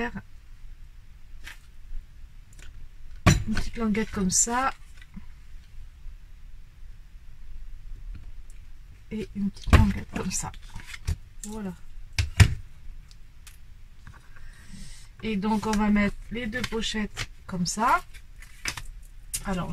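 Paper rustles and scrapes as hands handle it.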